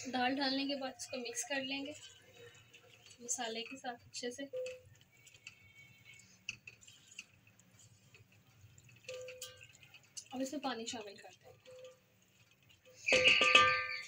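A spoon scrapes and stirs grains in a metal pot.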